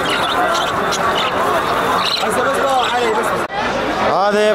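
Budgerigars chirp and chatter busily close by.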